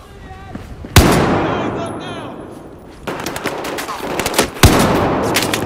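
A rifle fires loud, sharp shots that ring out and echo.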